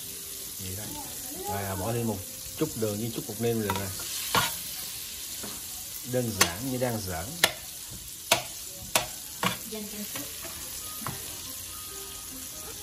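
Butter sizzles steadily in a hot pan.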